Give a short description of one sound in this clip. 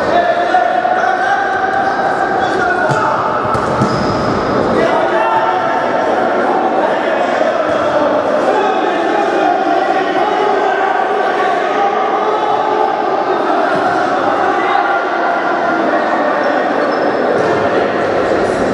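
A ball is kicked with dull thuds on a hard indoor floor.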